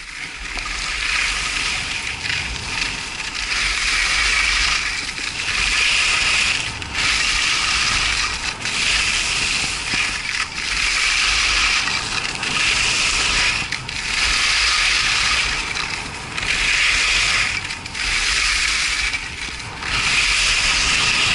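Skis scrape and hiss over hard snow in long, swishing turns.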